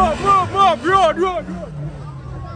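A man shouts with excitement close by.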